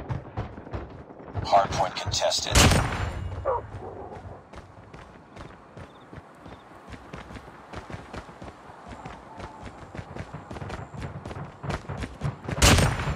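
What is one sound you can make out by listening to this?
Footsteps patter quickly on dirt.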